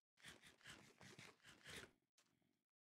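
Chewing and crunching bites sound in quick succession.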